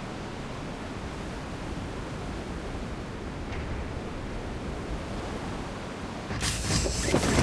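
Wind rushes steadily past a falling skydiver.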